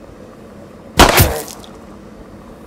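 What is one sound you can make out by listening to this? A pistol fires a single loud shot that echoes briefly.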